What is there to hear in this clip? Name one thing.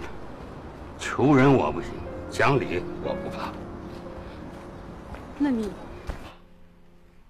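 A middle-aged man speaks tensely, close by.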